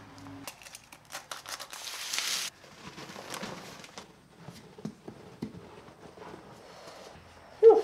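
Powder rustles and pours from a paper sack into a plastic tub.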